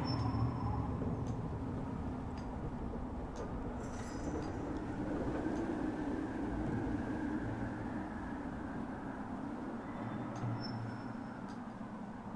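Hands scrape and grip on rough stone as someone climbs.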